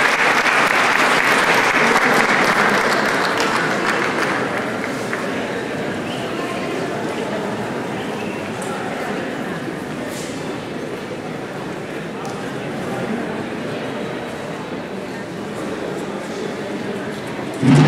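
A crowd of men and women chatter throughout a large echoing hall.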